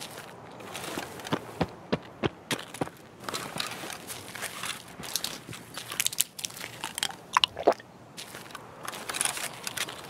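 Cardboard and plastic rustle as boxes are searched.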